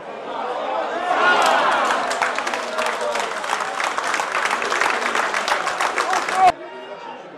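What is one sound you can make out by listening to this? A crowd in a stadium cheers loudly.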